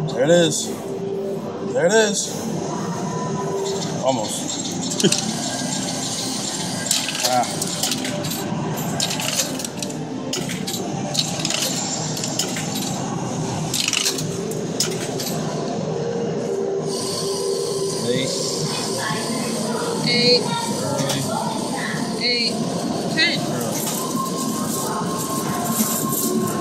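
Coins clink and clatter inside a coin pusher machine.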